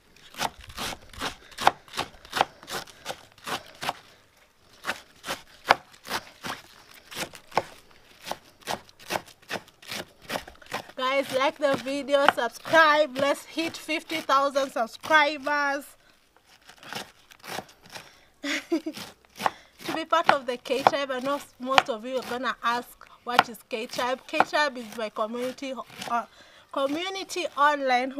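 A knife chops cabbage against a board with quick, sharp taps.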